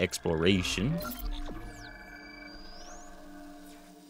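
A menu chime beeps.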